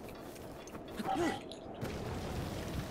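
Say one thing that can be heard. A magical blast bursts with a crackling roar.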